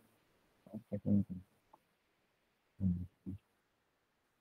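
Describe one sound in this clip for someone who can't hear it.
A man speaks briefly and calmly over an online call.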